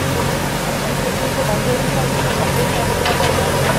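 A digger's diesel engine rumbles steadily.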